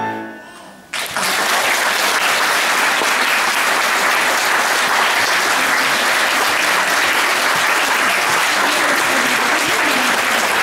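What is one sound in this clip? An audience applauds steadily in a hall.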